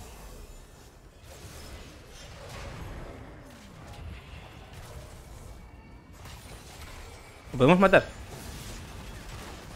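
Fantasy battle sound effects whoosh and crackle as spells are cast.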